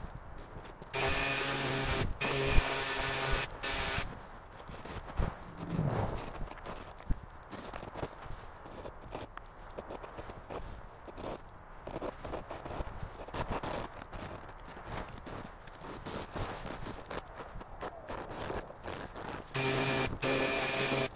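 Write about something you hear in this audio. A power tool motor whines loudly nearby.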